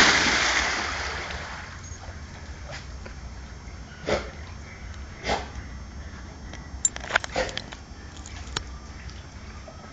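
A dog paddles and splashes through water.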